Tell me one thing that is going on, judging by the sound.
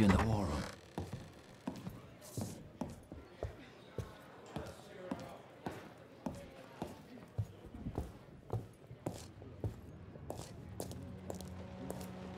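Footsteps walk steadily across a hard floor.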